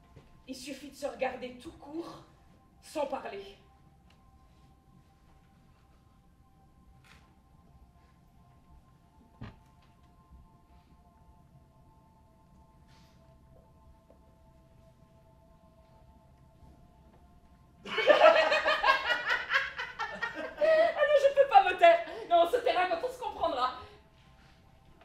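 A woman speaks with animation, at times loudly.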